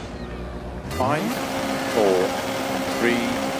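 A rally car engine idles and revs briefly.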